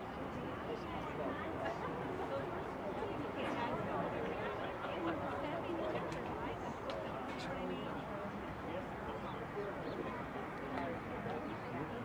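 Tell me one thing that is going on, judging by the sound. A woman speaks loudly to a group outdoors, heard from a distance.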